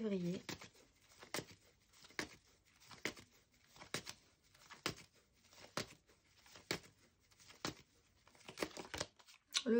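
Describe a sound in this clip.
Playing cards are shuffled with sharp, regular riffling snaps.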